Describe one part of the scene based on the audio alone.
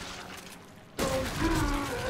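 A shotgun fires loudly.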